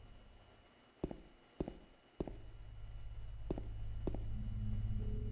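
Footsteps knock on a hard floor.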